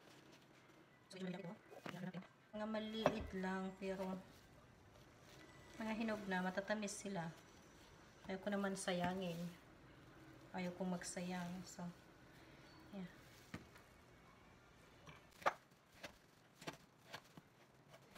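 A knife taps on a wooden cutting board while slicing melon.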